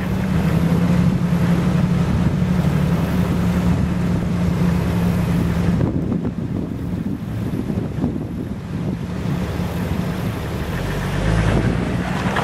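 Water splashes and churns around a Jeep's wheels as it drives through a flooded track.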